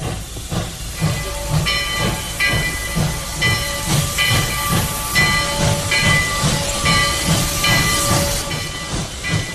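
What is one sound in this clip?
A steam locomotive chugs steadily along the tracks.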